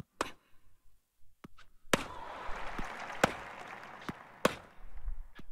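Tennis rackets strike a ball with sharp pops.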